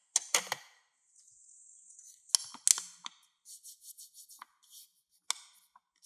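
Paper money rustles between fingers.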